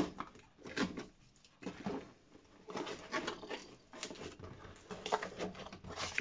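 Cardboard flaps rustle and scrape as a box is opened.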